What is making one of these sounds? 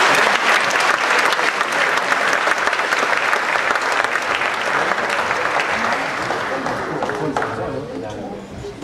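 An audience claps loudly, then the applause fades away.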